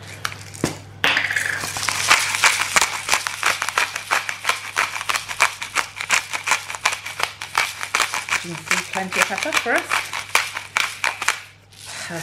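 Dried herbs crackle and rustle as fingers crumble them.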